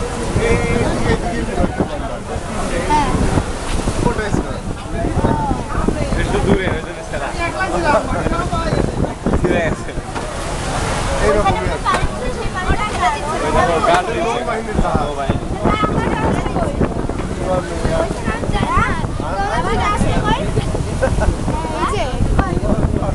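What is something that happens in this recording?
Wind buffets the microphone on an open ferry deck.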